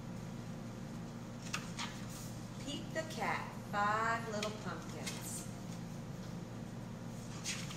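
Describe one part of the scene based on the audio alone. Paper pages rustle as a book's flaps are turned.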